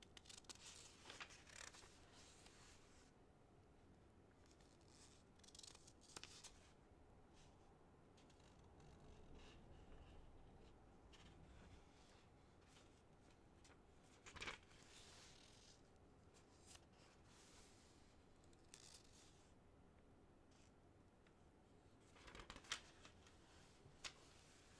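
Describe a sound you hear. Large wings flap with soft whooshes.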